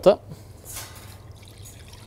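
Milk pours into a metal pan.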